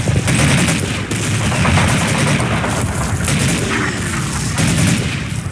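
Rifles and machine guns fire in rapid bursts nearby.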